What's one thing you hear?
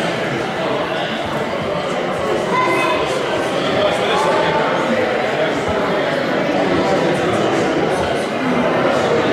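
Many people chatter at once in a large echoing hall.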